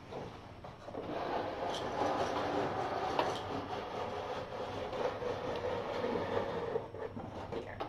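A cardboard box scrapes and rustles as it is slid and rearranged.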